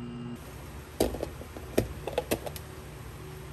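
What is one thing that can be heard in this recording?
A plastic lid pops and rattles on a container.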